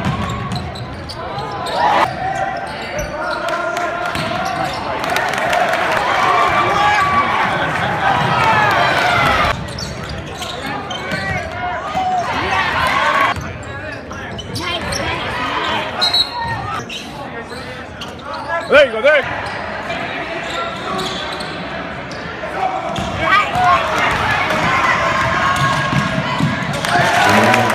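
A crowd cheers and chatters in an echoing gym.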